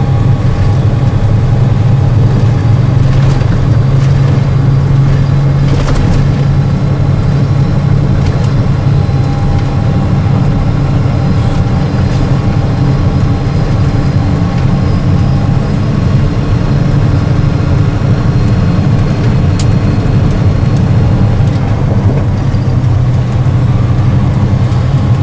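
An engine hums low and steady inside a moving vehicle.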